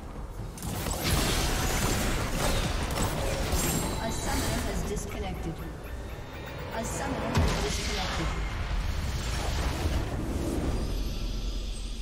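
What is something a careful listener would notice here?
Magic spell effects whoosh and crackle in a fast video game battle.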